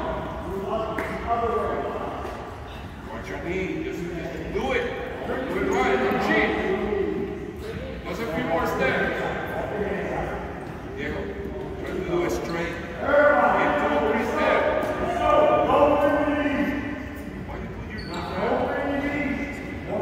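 Sneakers squeak and shuffle on a wooden floor in a large echoing hall.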